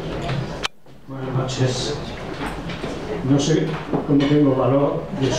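An elderly man reads aloud calmly into a microphone, heard through loudspeakers.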